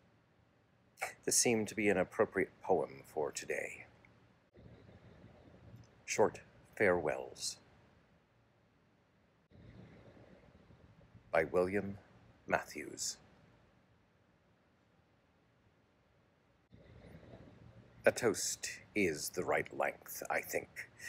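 An elderly man speaks calmly and close by, in short bursts.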